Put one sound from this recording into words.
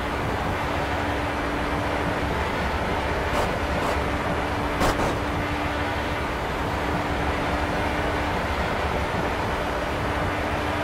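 An open-wheel race car engine roars at full throttle in a racing game.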